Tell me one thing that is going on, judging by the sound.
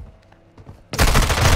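An automatic rifle fires a short, loud burst.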